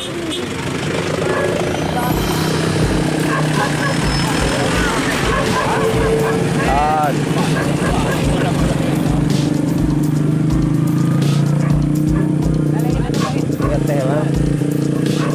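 Motorbike engines idle and rumble nearby.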